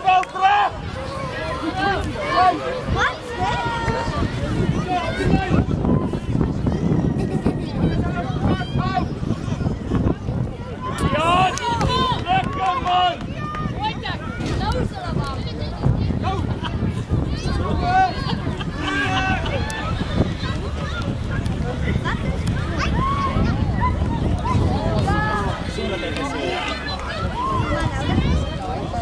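Young girls shout to each other as they play.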